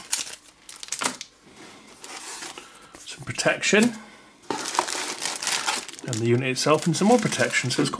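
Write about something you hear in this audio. A cardboard box flap scrapes and taps.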